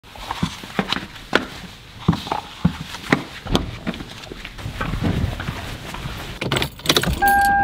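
Footsteps in slides tap on a hard floor.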